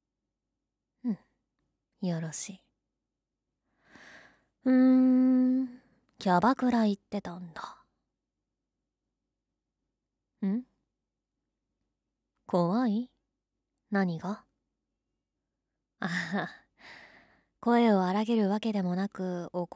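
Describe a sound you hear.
A young woman speaks playfully and closely into a microphone, in short bursts.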